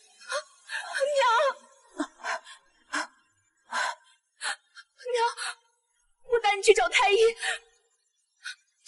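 A young woman cries out and sobs with anguish, close by.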